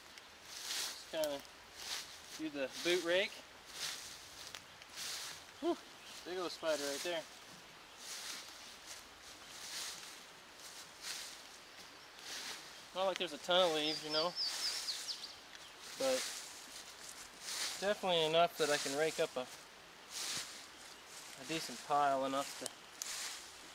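A man speaks calmly nearby in short phrases.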